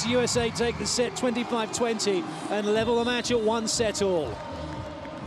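A large crowd chants loudly in an echoing arena.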